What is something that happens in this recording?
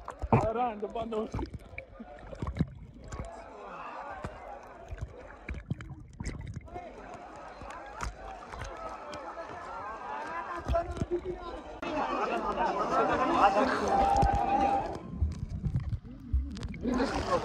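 Water gurgles and sloshes, heard muffled from just below the surface.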